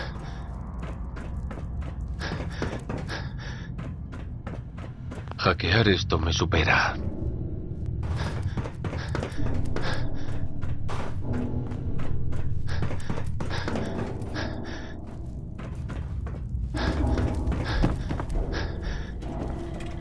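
Footsteps clang on a metal grating walkway.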